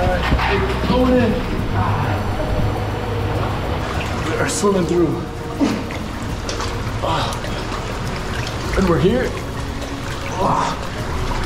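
Water trickles and splashes nearby.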